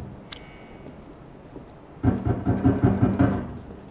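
A wooden door clicks open.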